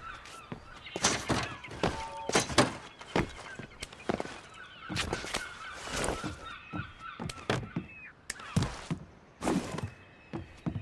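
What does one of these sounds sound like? Hands and feet thump on wooden crates during a climb.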